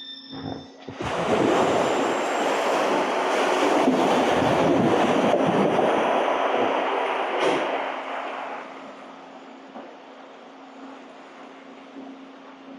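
Water gushes and roars loudly into a large echoing chamber.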